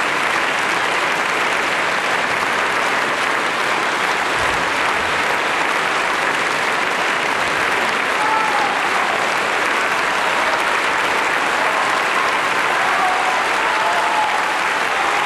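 A large audience applauds steadily in an echoing hall.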